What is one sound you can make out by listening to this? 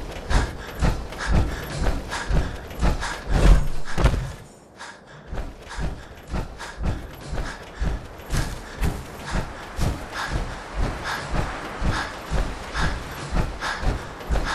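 Heavy metal-clad footsteps thud steadily on dirt.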